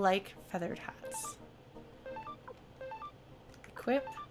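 Short electronic blips sound as a game menu cursor moves.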